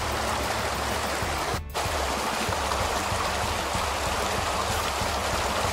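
A stream rushes and splashes over rocks close by.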